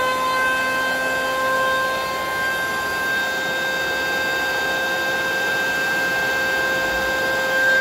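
An electric hand planer whines loudly and steadily.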